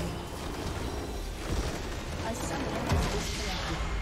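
Spells crackle and whoosh in a fast battle.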